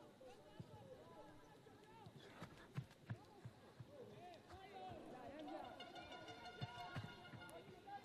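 A football thuds as players kick it.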